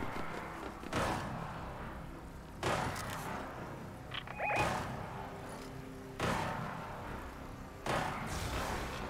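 A rifle fires sharp, loud shots several times.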